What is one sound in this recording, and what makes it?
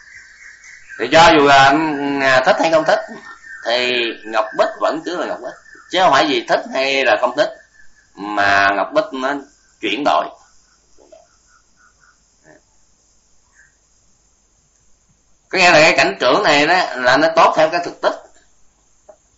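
An older man speaks calmly into a close microphone, with pauses.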